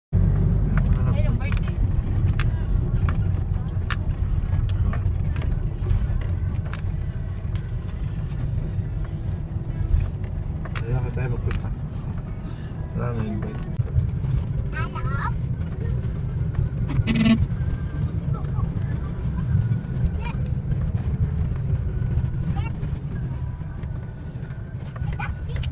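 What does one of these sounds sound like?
Loose items rattle and knock inside the car over the bumpy road.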